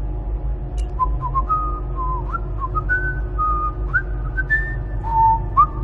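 A man whistles a short, wandering tune.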